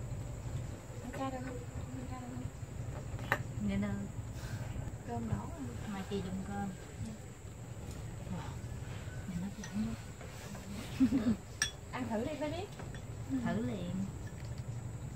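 Young women talk and laugh together close by.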